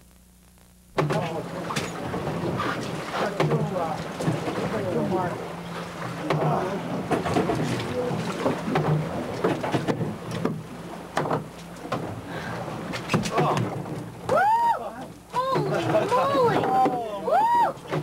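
Wind and waves rush around a boat at sea.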